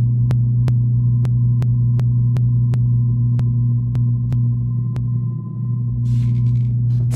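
A sci-fi energy gun hums low and steadily.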